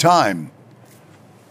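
An elderly man speaks briefly through a microphone.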